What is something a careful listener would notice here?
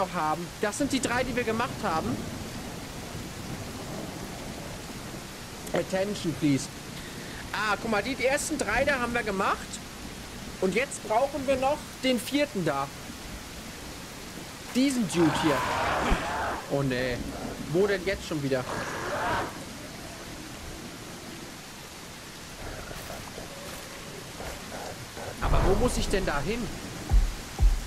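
A man talks with animation close to a microphone.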